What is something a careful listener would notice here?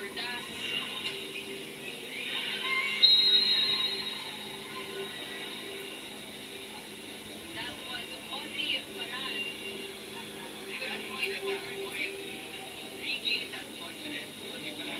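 A crowd cheers in an arena, heard through a small speaker.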